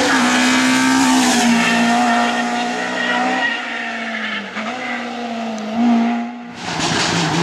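A BMW M3 rally car accelerates at full throttle and shifts gears.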